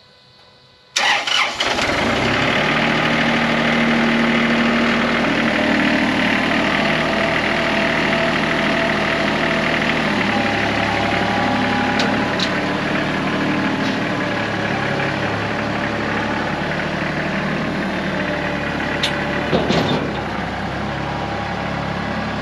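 A tractor engine starts and runs with a steady, loud rumble.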